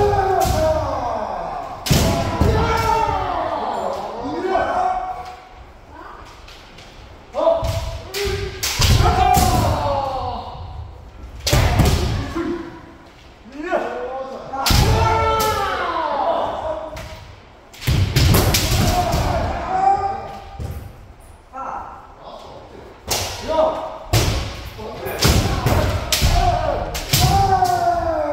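Kendo fencers shout loud, drawn-out kiai cries that echo through a large hall.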